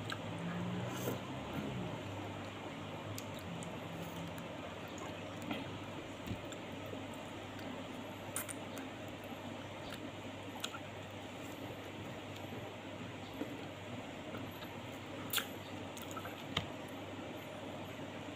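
A woman chews food close by, with wet smacking sounds.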